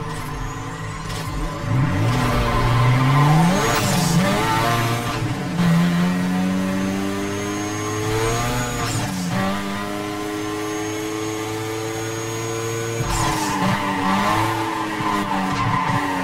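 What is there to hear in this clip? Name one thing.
A sports car engine revs loudly and roars as it speeds up through the gears.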